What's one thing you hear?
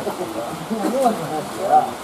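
A fish splashes in the water.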